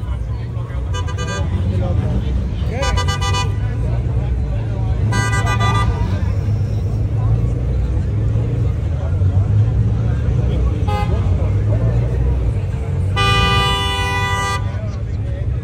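Car horns honk in short blasts.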